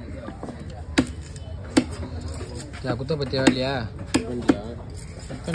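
A heavy knife chops through fish onto a wooden block with sharp thuds.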